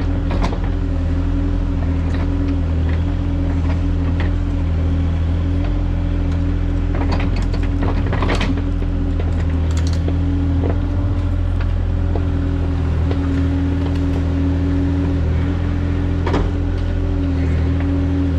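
An excavator bucket scrapes and digs into soil.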